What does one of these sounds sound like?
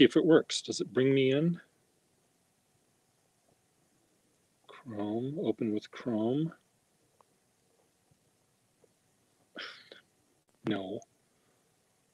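An older man speaks in short bursts over an online call, with pauses in between.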